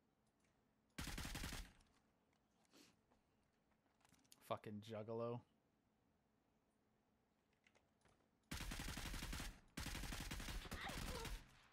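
A rifle fires rapid, loud bursts of shots at close range.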